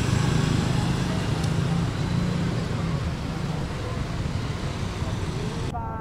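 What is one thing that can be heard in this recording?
A motorcycle engine hums as it passes close by.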